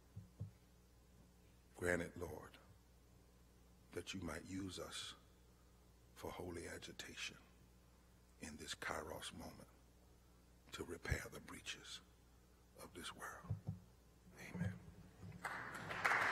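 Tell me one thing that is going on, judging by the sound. A man speaks slowly and forcefully through a microphone, pausing between phrases.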